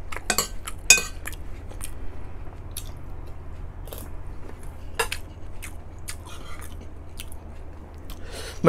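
A man chews and smacks his lips close by.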